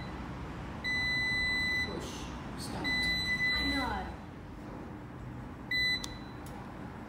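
A washing machine's control panel gives high electronic beeps.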